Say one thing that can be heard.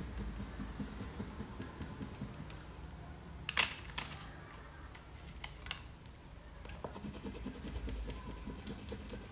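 A crayon scratches and rubs on paper.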